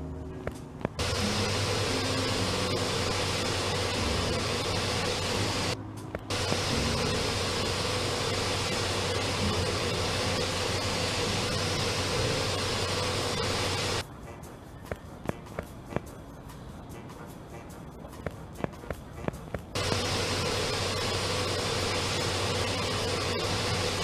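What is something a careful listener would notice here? A pressure washer sprays with a loud, steady hiss.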